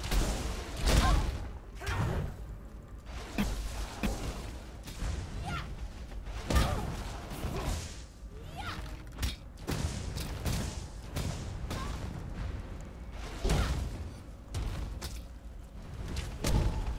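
Video game spell blasts and combat effects crackle in bursts.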